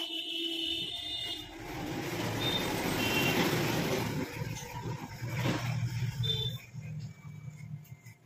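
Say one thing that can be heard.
An electric hair clipper buzzes close by.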